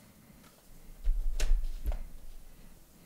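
A laptop is turned over with clicks and bumps.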